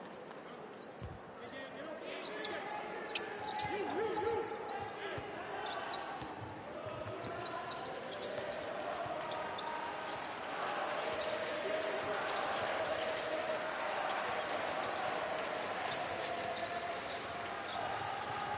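Basketball shoes squeak sharply on the court.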